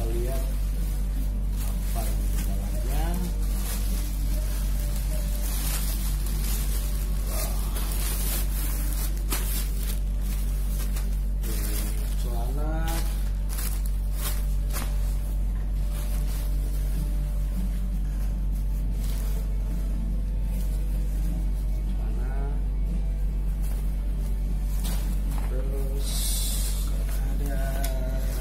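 A plastic bag crinkles and rustles as hands handle it.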